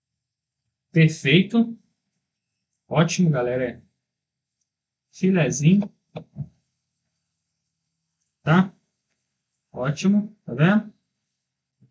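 A man speaks calmly in short phrases close to a microphone.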